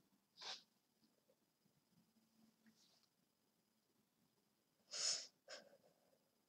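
A boy makes brief breathy sounds close to a microphone.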